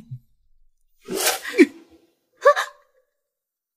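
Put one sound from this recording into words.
A young woman speaks brightly close by.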